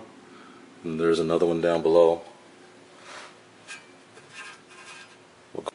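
Metal parts knock and scrape softly as a hand handles them.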